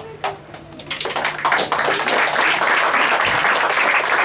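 A group of children clap and cheer loudly.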